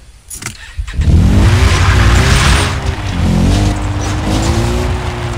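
A quad bike engine revs as the bike drives over a dirt track.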